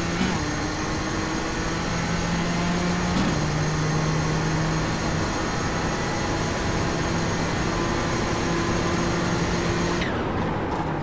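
A racing car engine drones loudly at high speed, shifting gears.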